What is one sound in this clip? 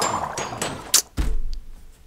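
Stone blocks crack and break with short taps.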